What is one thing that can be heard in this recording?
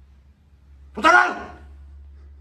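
A man shouts suddenly close by.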